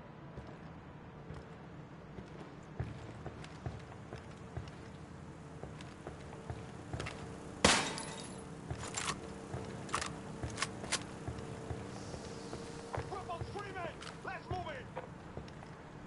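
Footsteps crunch slowly on a dirt floor.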